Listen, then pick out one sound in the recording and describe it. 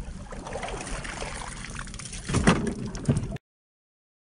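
A net splashes into the water close by.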